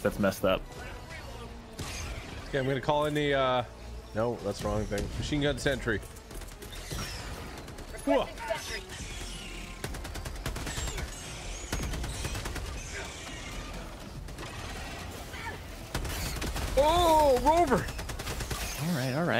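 Gunfire and explosions crackle from a game.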